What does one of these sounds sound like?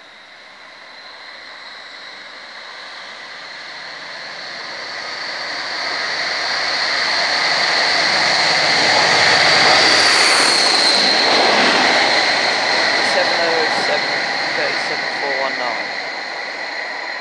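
Steel wheels screech and clatter on the rails.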